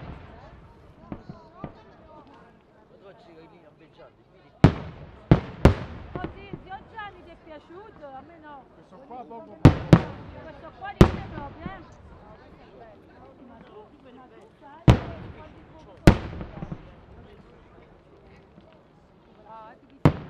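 Fireworks crackle and sizzle between the booms.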